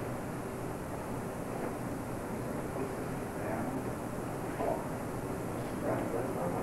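Bare feet shuffle and thump on a padded mat.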